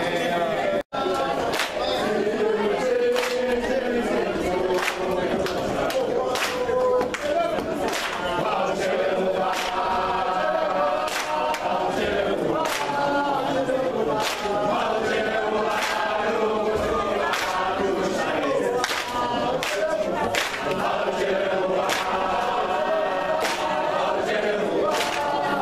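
A crowd claps hands in a steady rhythm.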